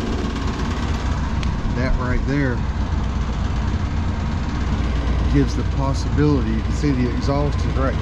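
An outdoor air conditioning unit hums steadily.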